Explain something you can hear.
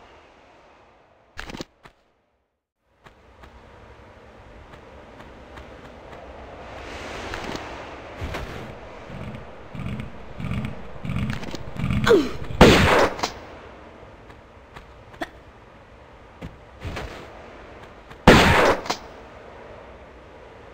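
Quick footsteps patter over a stone floor.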